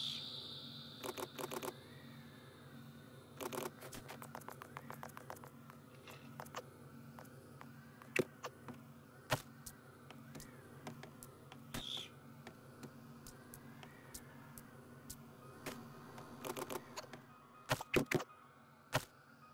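Building blocks knock and click in quick bursts.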